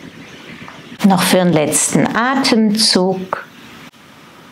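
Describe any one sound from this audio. A woman speaks calmly and softly nearby.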